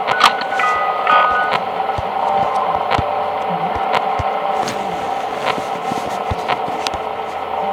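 Electronic static crackles and clicks as views switch.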